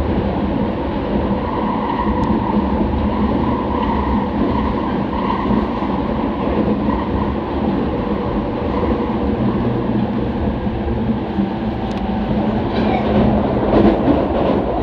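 An electric commuter train runs at speed, its motors and wheels rumbling, heard from inside the carriage.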